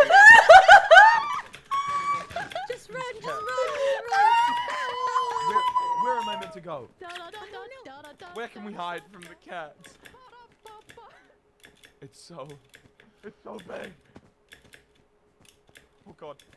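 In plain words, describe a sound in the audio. A young woman talks animatedly into a microphone, with high squeals of excitement.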